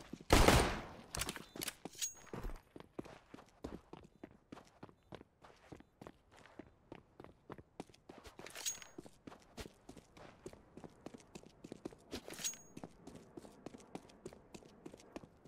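Quick footsteps run steadily on hard ground.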